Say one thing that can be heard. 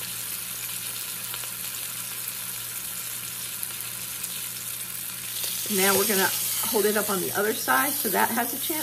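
Meat sizzles softly in hot fat.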